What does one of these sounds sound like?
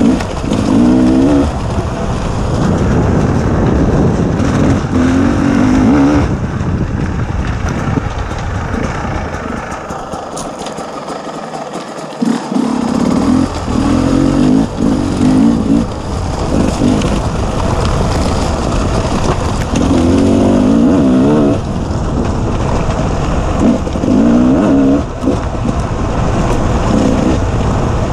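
Tyres crunch over loose stones.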